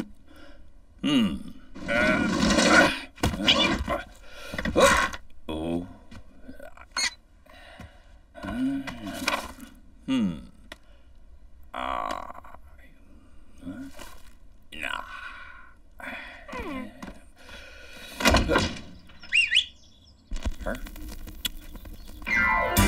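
A man mumbles and grunts close by.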